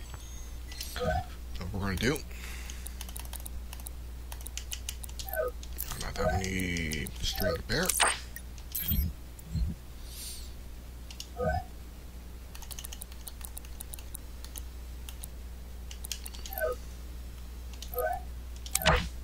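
Short electronic menu blips sound as selections change.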